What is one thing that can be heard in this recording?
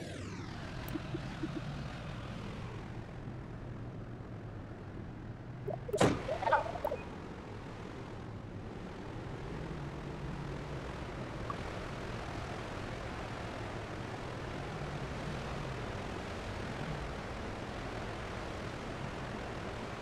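Wind rushes past in a low, steady roar.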